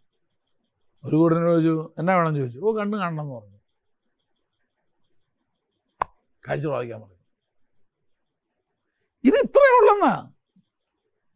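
A middle-aged man speaks with animation through a microphone in short bursts with pauses.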